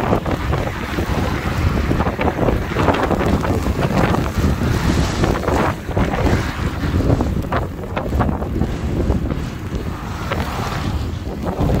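Tyres hiss on a wet road as a car drives along.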